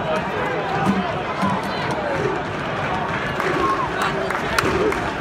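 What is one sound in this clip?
A large stadium crowd murmurs and chatters in a dense, open-air roar.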